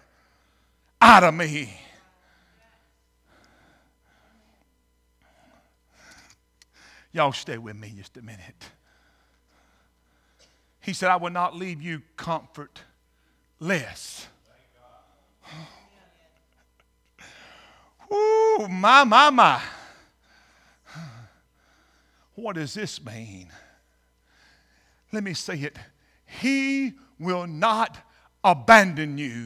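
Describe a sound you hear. A middle-aged man preaches with animation through a microphone in an echoing hall, pausing between phrases.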